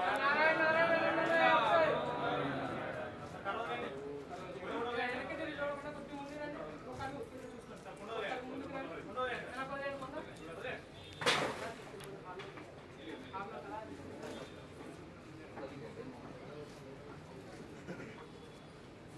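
Several men talk quietly among themselves nearby.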